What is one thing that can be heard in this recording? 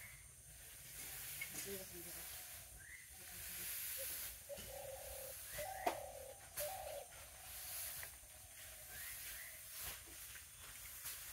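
Dry straw rustles and crackles as it is handled.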